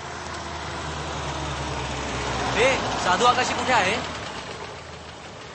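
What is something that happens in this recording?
A car engine idles with a low hum.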